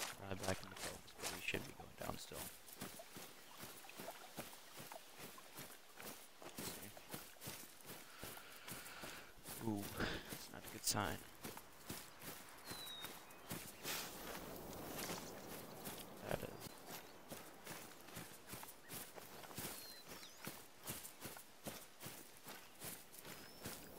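Footsteps rustle through tall grass at a steady walking pace.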